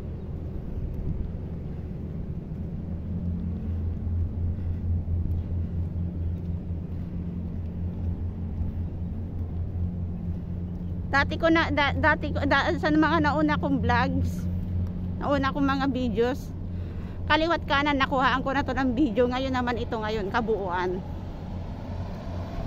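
Wind blows steadily outdoors with a low rumble.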